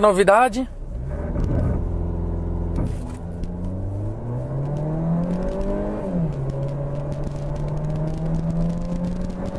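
A car engine idles and then revs up as the car accelerates.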